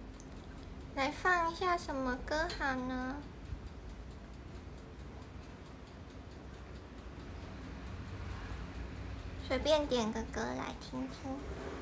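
A young woman speaks softly and close up.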